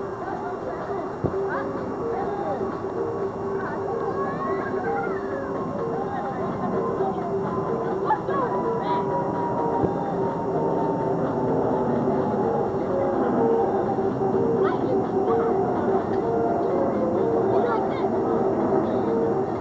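A middle-aged woman talks warmly up close.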